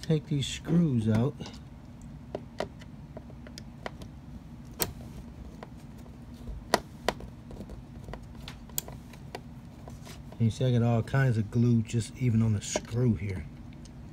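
A screwdriver clicks and taps against small metal parts.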